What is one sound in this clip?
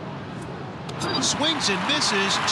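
A pitched ball smacks into a catcher's mitt.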